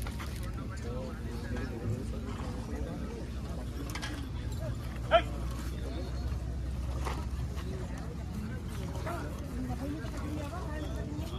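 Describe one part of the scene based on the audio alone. Men talk nearby in a lively crowd outdoors.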